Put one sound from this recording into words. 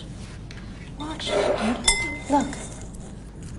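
A woman speaks softly and gently nearby.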